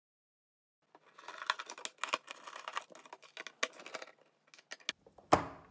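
A screwdriver turns and squeaks against small screws.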